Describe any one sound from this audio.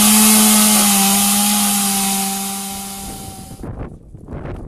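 A chainsaw engine roars loudly, close by, while cutting wood.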